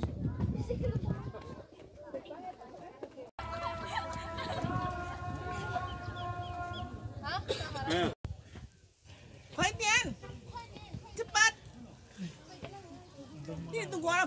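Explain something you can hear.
Young women chat and call out outdoors nearby.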